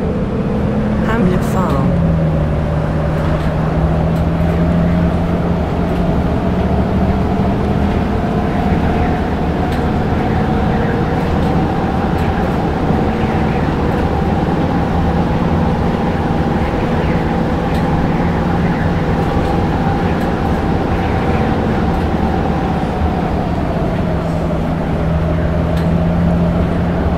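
Tyres roll on asphalt under a city bus.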